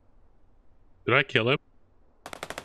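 A man speaks briefly and closely into a microphone.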